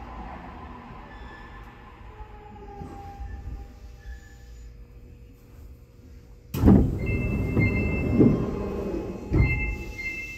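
A lift car hums and rumbles as it moves.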